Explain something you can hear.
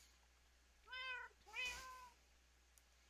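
A cat meows softly a few times.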